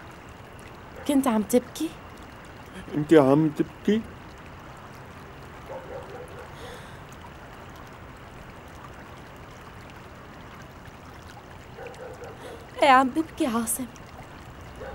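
A young woman speaks close by, upset.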